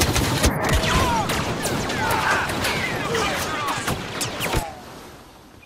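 Blaster shots fire rapidly with sharp zapping bursts.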